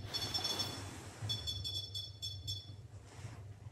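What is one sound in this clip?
A handheld electronic device gives off high, steady beeping tones.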